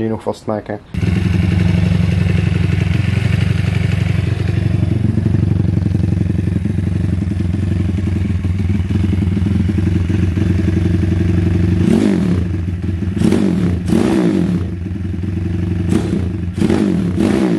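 A small motorcycle engine starts and idles close by with a rapid, steady putter.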